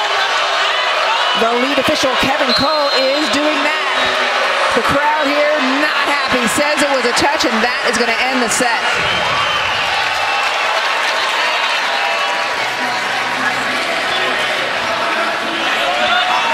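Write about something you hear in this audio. A large crowd cheers and chatters in an echoing hall.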